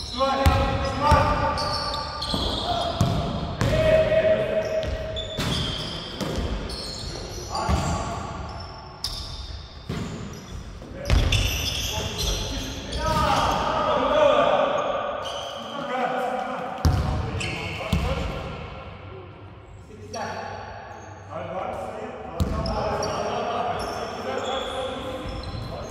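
Men call out to each other across an echoing gym.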